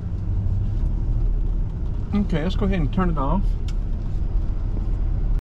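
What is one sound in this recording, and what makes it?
Light rain patters on a car windshield.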